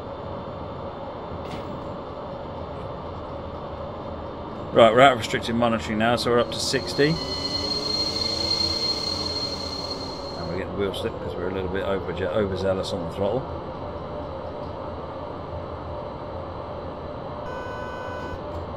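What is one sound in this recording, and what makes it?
A train engine hums steadily as it rolls along the tracks.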